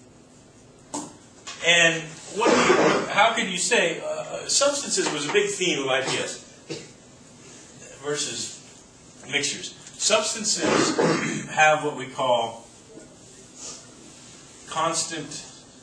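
A man speaks calmly nearby, explaining.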